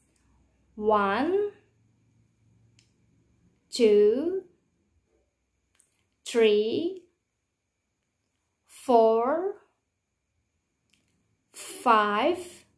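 A woman speaks clearly and slowly into a close microphone, in short phrases with pauses.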